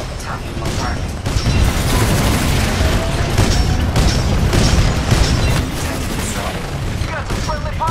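A heavy cannon fires rapid booming shots.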